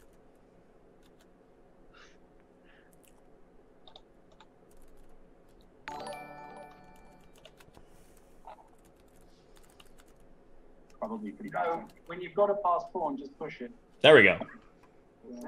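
A second man laughs and talks over an online call.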